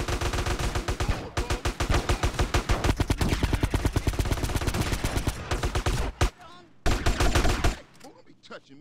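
Guns fire in rapid, loud bursts.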